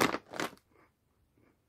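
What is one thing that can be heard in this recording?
A person crunches on a crisp chip up close.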